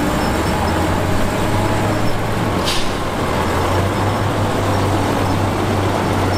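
A bulldozer engine rumbles loudly nearby.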